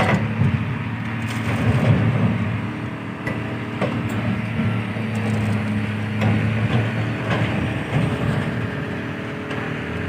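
Metal creaks and groans as a ship's upper structure gives way.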